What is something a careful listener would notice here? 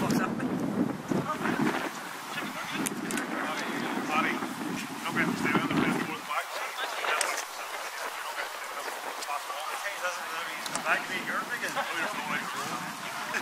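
Young men shout calls to each other across an open field.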